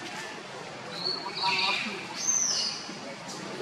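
A baby monkey squeaks in short high cries.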